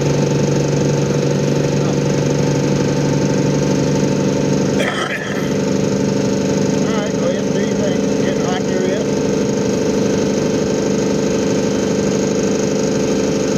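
A heavy truck engine drones steadily while driving along a road.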